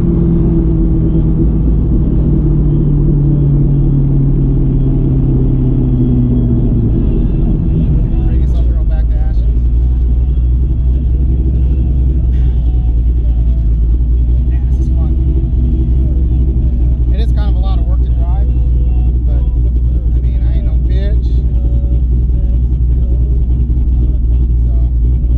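A car engine hums loudly and steadily from inside the cabin.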